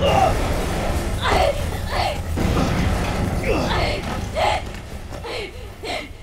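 A young woman gasps and groans in pain.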